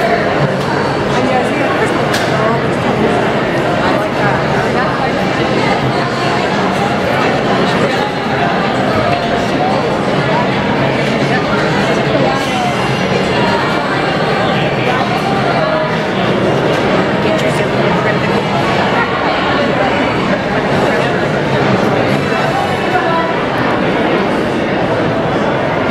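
A large crowd chatters loudly all around in an echoing hall.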